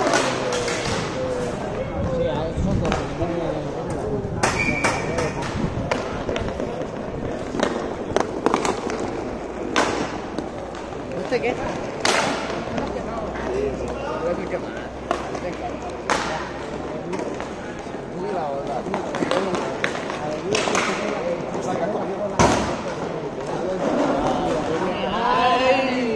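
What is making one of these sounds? Young players shout and call out across an open court.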